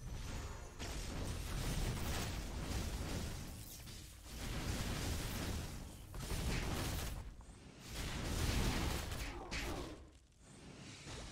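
Game spell effects whoosh and crackle in rapid bursts.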